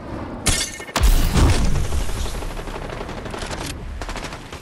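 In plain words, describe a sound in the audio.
Wind rushes loudly past while gliding through the air.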